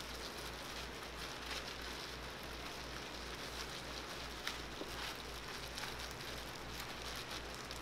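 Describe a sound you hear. Plastic gloves crinkle as hands roll food.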